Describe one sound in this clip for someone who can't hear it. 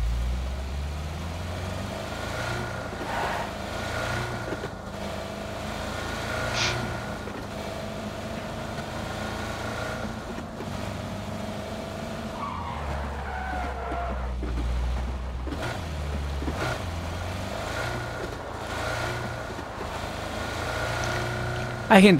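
A car engine hums and revs steadily while driving.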